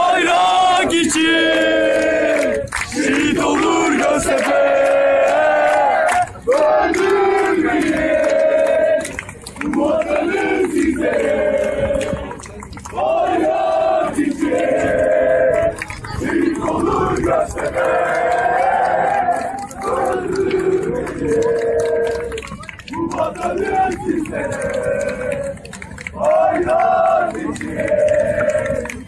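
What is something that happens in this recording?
A large crowd of men and women sings and chants loudly together, close by, outdoors.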